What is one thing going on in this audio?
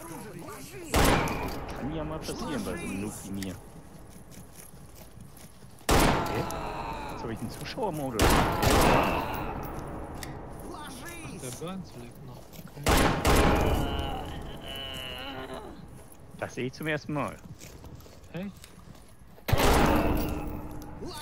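A shotgun fires loud blasts that echo off hard walls.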